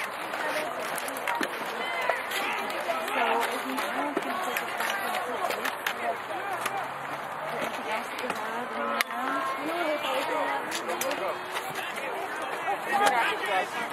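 Young male players shout and call out to each other across an open field outdoors.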